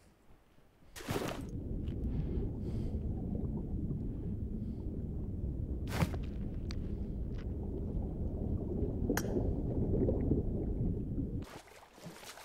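Water rumbles and gurgles, muffled as if heard from underwater.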